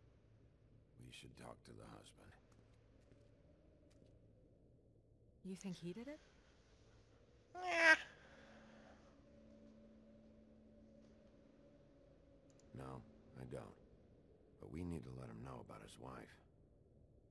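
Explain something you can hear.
A man speaks calmly in a low voice.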